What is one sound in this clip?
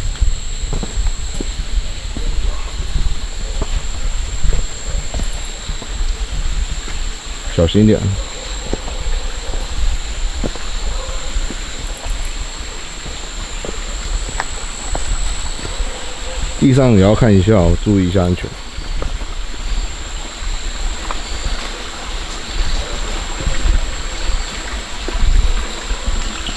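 Footsteps crunch and rustle through dry undergrowth.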